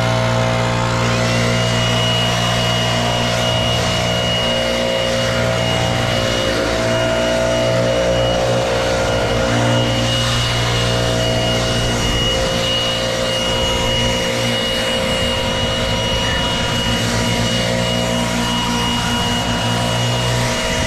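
An electric leaf blower whines and roars steadily close by.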